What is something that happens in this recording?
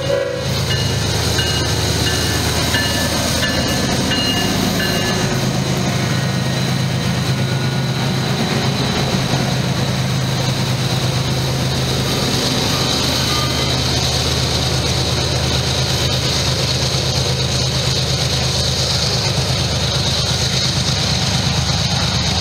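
A diesel locomotive engine rumbles loudly and steadily close by.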